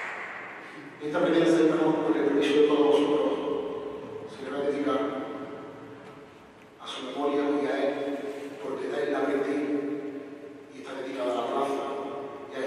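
A choir sings slow, drawn-out phrases that echo through a large hall.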